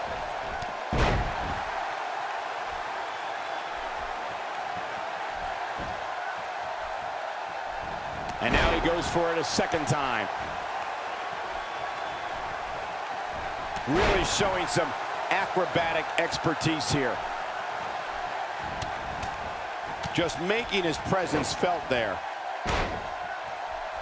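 Bodies slam down hard onto a wrestling ring mat.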